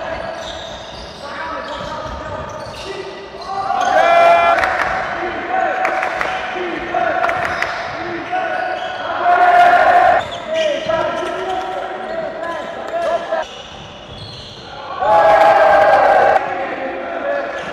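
Sneakers squeak sharply on a hard court floor in an echoing hall.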